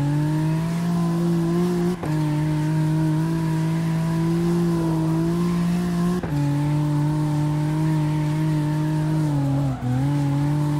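A car engine roars at high revs, dropping briefly at each gear shift.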